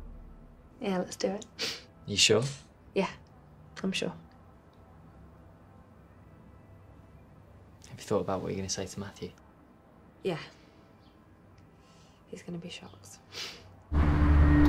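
A young woman speaks softly and warmly up close, in short phrases with pauses.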